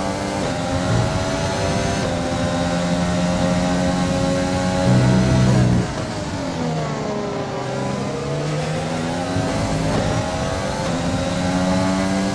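A racing car engine whines at high revs, dropping in pitch as it slows down for a corner and then rising again.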